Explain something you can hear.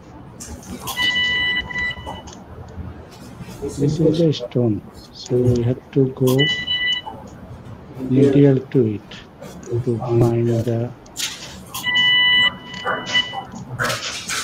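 An electrosurgical instrument gives off a steady electronic beeping tone while it is switched on.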